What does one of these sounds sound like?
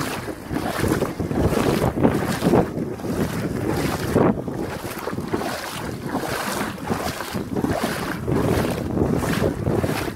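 Shallow water laps gently against sand.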